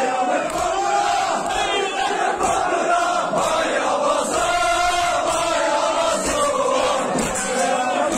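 A large crowd of men chants loudly together in an echoing hall.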